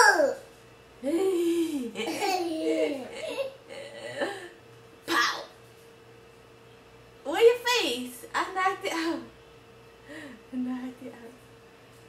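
A young woman talks and laughs cheerfully close by.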